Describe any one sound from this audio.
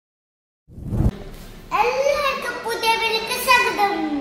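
A young boy speaks, close by.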